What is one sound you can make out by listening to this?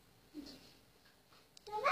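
A young boy talks excitedly nearby.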